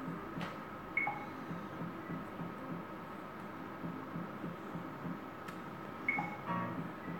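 A slot machine chimes when its reels stop.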